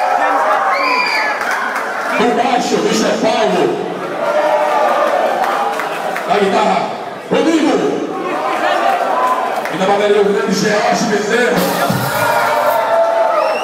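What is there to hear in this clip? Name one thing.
A young man sings into a microphone through loudspeakers.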